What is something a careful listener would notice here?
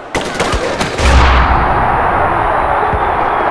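An explosion booms and rumbles.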